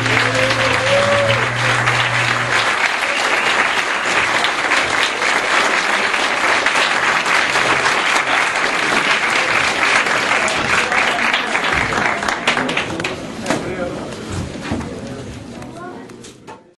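An audience claps and cheers loudly in an echoing hall.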